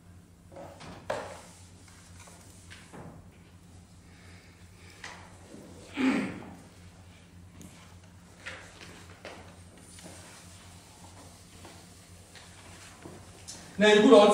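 A cloth rubs and wipes across a chalkboard.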